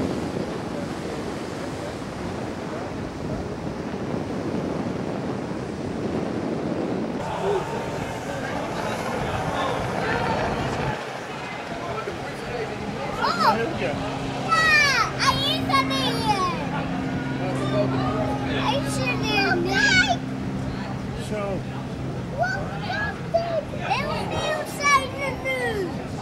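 Powerboat engines roar as the boats race over choppy water.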